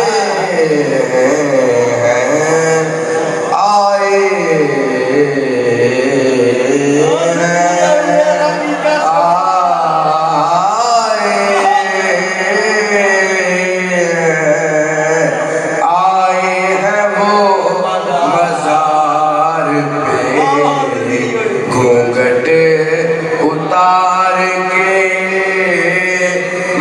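A young man chants melodically into a microphone, heard through loudspeakers in a large echoing space.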